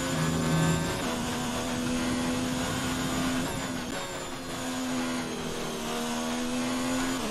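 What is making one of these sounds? A racing car engine roars at high revs, dropping in pitch as it shifts down and then climbing again.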